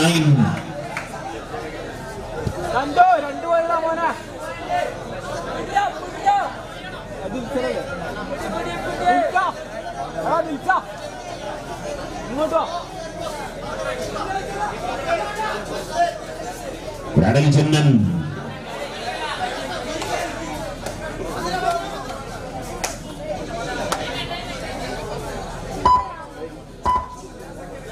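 A large crowd shouts and cheers nearby.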